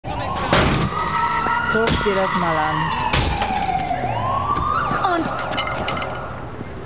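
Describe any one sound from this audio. A car alarm wails with a tone that rises and falls.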